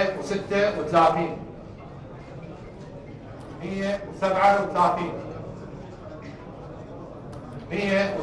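A man calls out loudly in short bursts, with pauses between.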